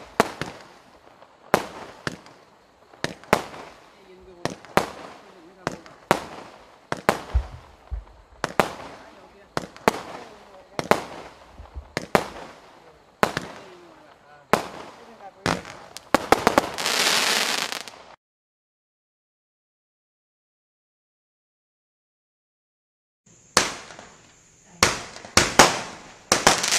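Fireworks shells launch and burst with sharp bangs outdoors, echoing off into the distance.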